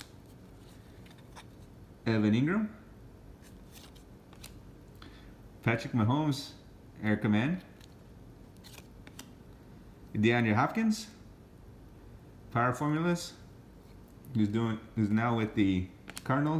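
Trading cards slide and rustle softly between fingers.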